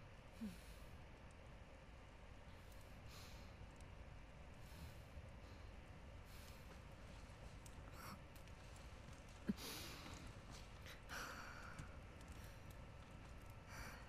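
A young woman breathes heavily nearby.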